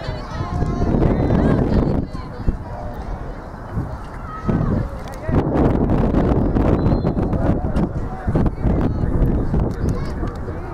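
A crowd of spectators shouts and cheers outdoors nearby.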